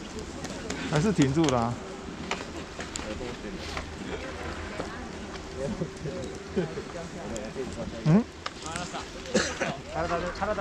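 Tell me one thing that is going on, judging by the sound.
Skis and boots clatter on packed snow.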